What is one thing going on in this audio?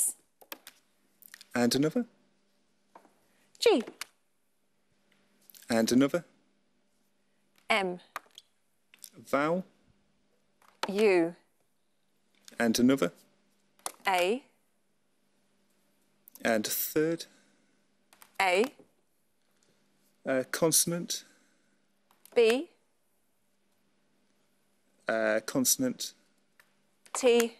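A young woman calls out short words one at a time, with pauses between them.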